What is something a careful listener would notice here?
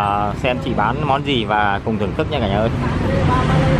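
A woman talks nearby in a lively voice.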